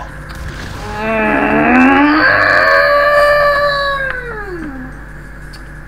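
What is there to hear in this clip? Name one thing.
A monster growls loudly up close.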